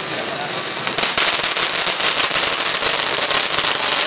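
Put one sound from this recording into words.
Sparks crackle and pop sharply.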